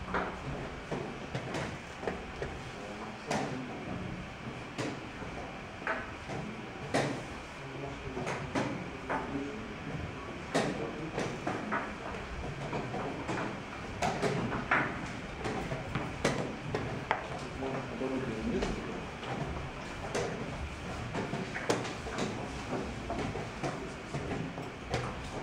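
Chess pieces tap and click on a wooden board.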